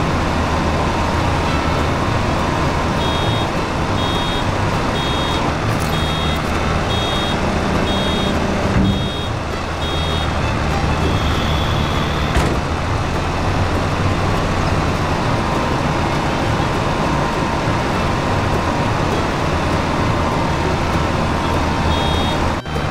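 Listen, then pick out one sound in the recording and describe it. A tractor engine drones while pulling a round baler.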